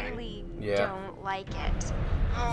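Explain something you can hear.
A young woman speaks softly and nervously.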